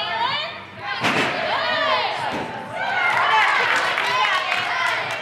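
Young women cheer loudly.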